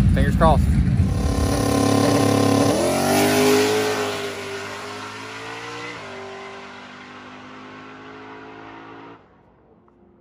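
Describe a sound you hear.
A car engine revs loudly and roars away into the distance, fading.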